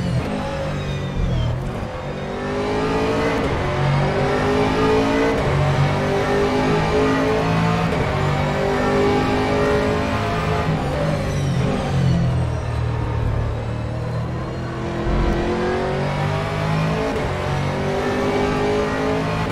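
A race car engine roars and revs up and down through the gears.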